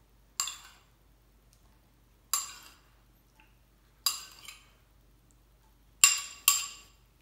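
A knife taps against a ceramic bowl with bright, ringing clinks, a few seconds apart.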